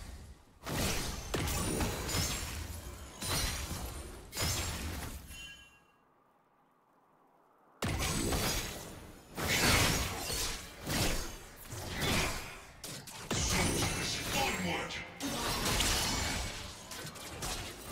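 Video game spell effects whoosh and crackle in bursts during a fight.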